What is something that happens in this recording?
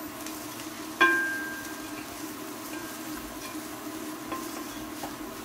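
A spoon strikes a ceramic bowl with a ringing clink.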